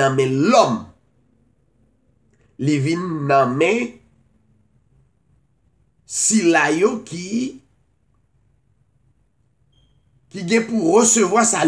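A middle-aged man speaks calmly and close to a microphone, in short phrases with pauses.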